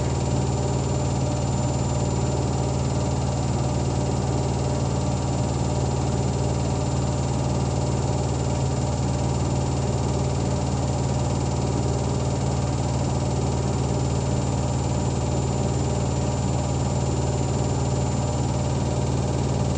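A washing machine hums steadily as its drum turns.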